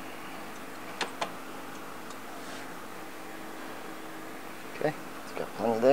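Metal parts clank and click.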